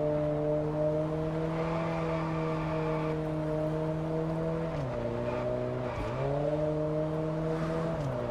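A car engine hums steadily at high speed, dropping in pitch as the gears shift and then rising again.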